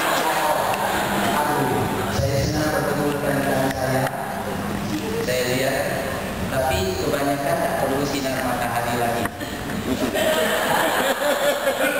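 A man sings into a microphone, heard through loudspeakers in a large room.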